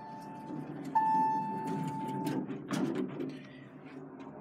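Elevator doors slide shut with a rumble.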